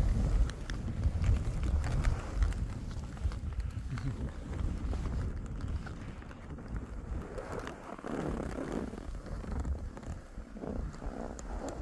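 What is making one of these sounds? Skis hiss and scrape over soft snow.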